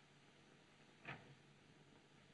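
A door clicks shut.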